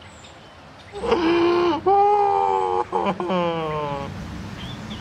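A young man laughs loudly close by.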